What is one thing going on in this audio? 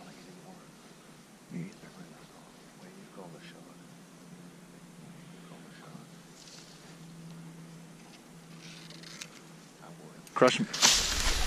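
Burlap rustles and scrapes close by.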